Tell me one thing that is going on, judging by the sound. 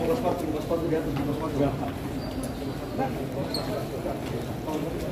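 Several men talk to one another nearby in a large echoing hall.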